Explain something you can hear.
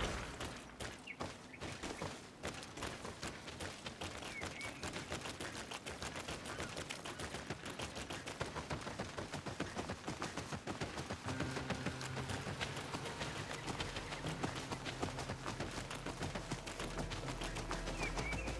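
Footsteps run steadily over dirt and grass.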